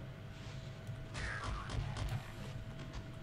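A creature growls and groans close by.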